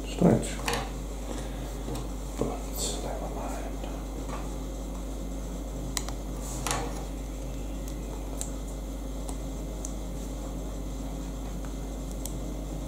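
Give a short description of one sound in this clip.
Small plastic toy bricks click and snap together.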